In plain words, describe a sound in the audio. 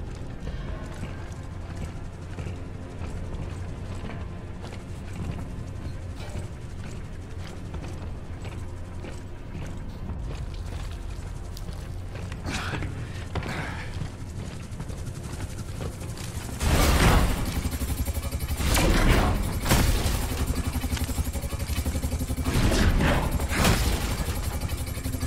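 Heavy boots thud on metal grating.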